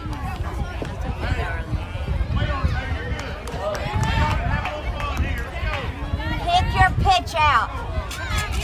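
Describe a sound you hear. Young children shout and cheer excitedly nearby.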